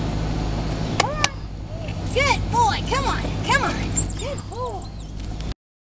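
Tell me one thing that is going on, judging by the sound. A dog whines and yelps excitedly close by.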